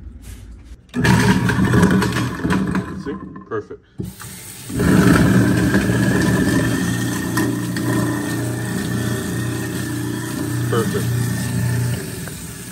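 A garbage disposal grinds and hums loudly.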